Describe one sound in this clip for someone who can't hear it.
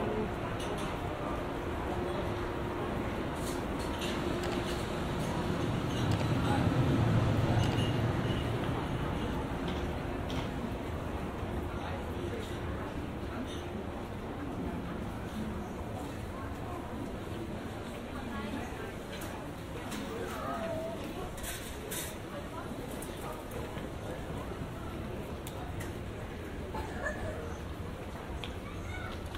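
A low hum of distant chatter and footsteps echoes through a large indoor hall.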